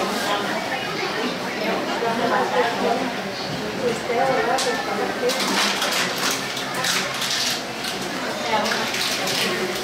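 A plastic bag rustles as a woman handles it.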